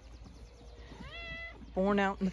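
Lambs bleat close by.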